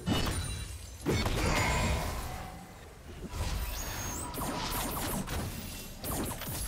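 Game sound effects of spells and hits burst and clash.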